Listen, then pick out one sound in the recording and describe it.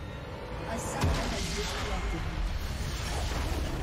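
A large magical explosion booms in a video game.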